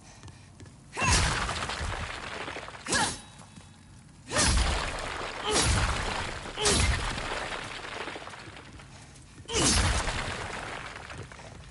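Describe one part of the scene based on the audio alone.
Wooden crates smash and splinter loudly, with debris clattering down.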